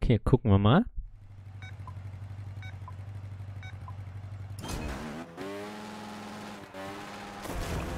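A motorbike engine idles with a steady low rumble.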